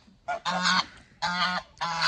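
A goose flaps its wings.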